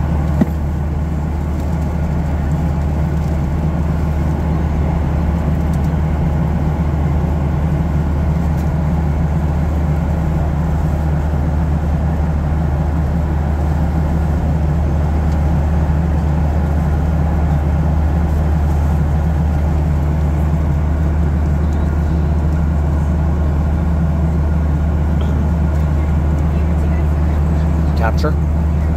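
A jet engine roars with a steady, deep drone from inside an aircraft cabin.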